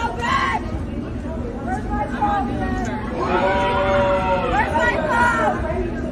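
A woman shouts and wails loudly in the open air.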